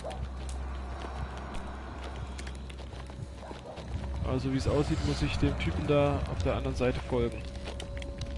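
Fires crackle and pop.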